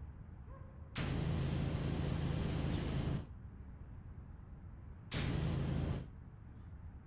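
A pressure washer sprays water in hissing bursts.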